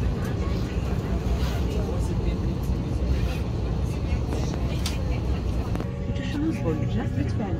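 Passengers murmur and talk.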